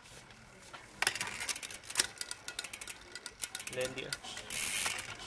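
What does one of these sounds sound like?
A bicycle chain clicks and rattles as the pedals turn.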